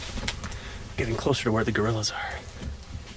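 A man speaks quietly and excitedly close by.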